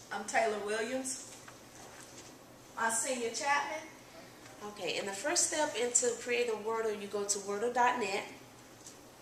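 A young woman speaks calmly to a room, close by.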